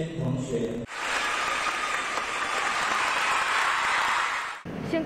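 A crowd cheers and applauds loudly in a large echoing hall.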